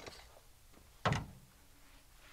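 A chainsaw is set down with a thud.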